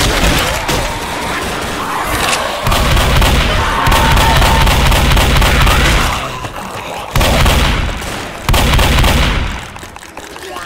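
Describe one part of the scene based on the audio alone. Shotgun blasts boom loudly, one after another.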